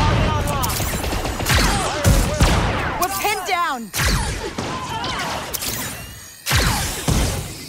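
Gunshots bang loudly with ringing echoes.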